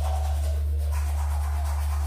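A toothbrush scrubs against teeth.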